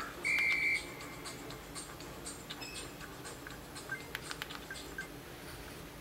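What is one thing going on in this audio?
A mobile game plays short beeps and effects through a small phone speaker.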